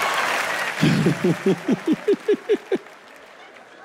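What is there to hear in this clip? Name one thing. A large audience claps in rhythm.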